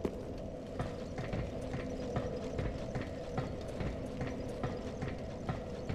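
A metal ladder clanks as someone climbs it.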